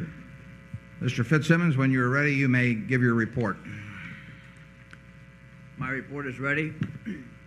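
An elderly man speaks into a microphone, reading out calmly.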